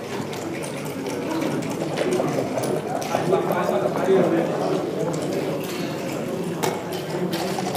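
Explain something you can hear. Plastic game pieces click and slide on a wooden board.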